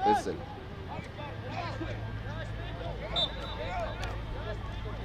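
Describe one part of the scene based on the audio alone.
Young men shout to each other in the distance across an open field.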